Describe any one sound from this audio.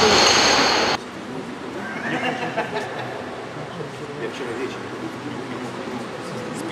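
Voices murmur in a large echoing hall.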